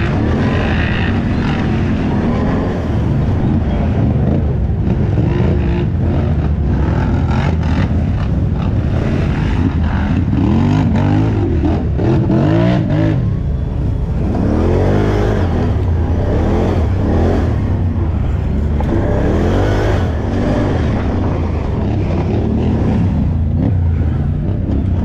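A quad bike engine roars and revs up and down close by.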